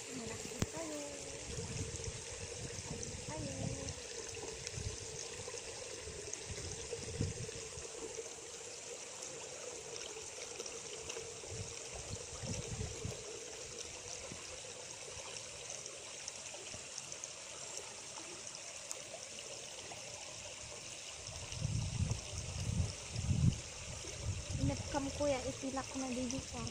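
Water trickles and splashes as it pours from bags into a pond.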